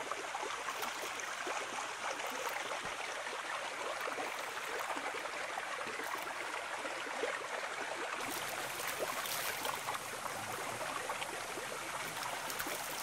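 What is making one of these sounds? A stream of water rushes steadily over rocks outdoors.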